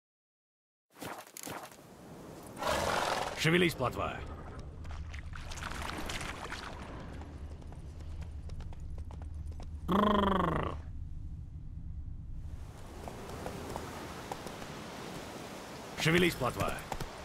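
A horse's hooves thud steadily along a dirt path.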